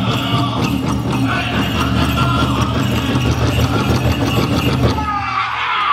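Bells on a dancer's ankles jingle in quick rhythm.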